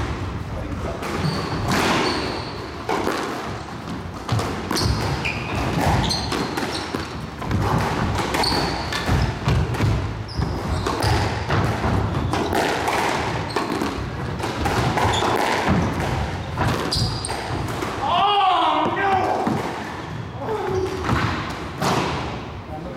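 Rackets strike a squash ball with sharp cracks.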